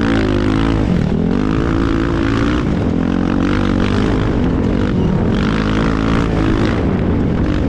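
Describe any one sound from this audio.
A motorbike engine roars and revs up and down close by.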